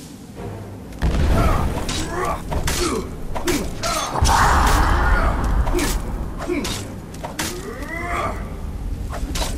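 Blades clash and strike heavily in a close fight.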